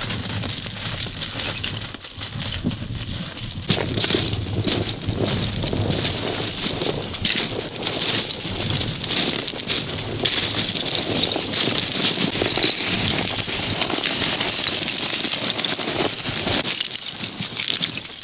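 Hooves crunch and clatter on loose, rattling stones.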